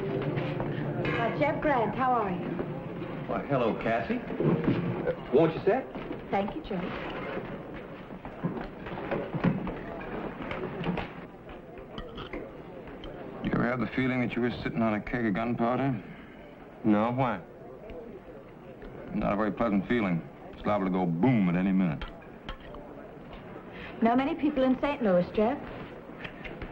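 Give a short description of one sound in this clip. A young man talks calmly across a table.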